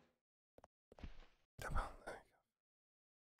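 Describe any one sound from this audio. A man speaks into a close microphone with animation.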